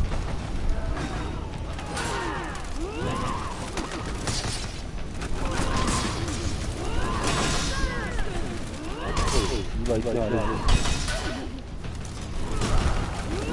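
Blades whoosh through the air in quick swings.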